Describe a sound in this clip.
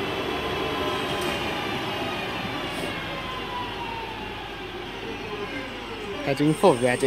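A train rolls past on the tracks with a whining electric motor and fades.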